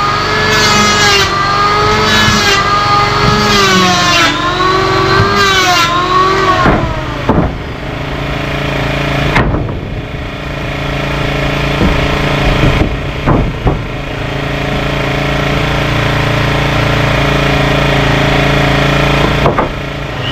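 An electric power tool hums steadily nearby.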